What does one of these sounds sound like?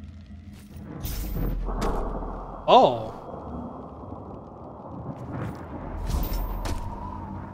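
Heavy footsteps thud as a figure jumps and lands on rocky ledges.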